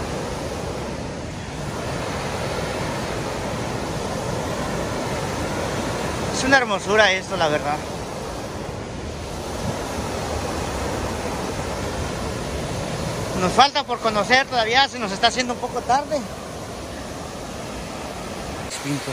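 A waterfall roars steadily close by.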